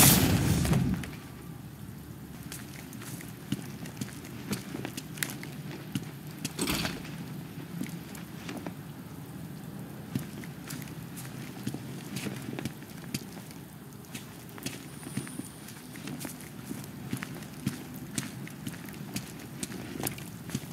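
Heavy footsteps tread on wet pavement.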